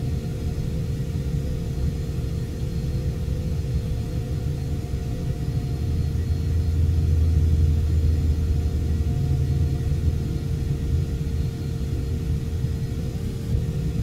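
Jet engines hum steadily, heard from inside an aircraft cabin.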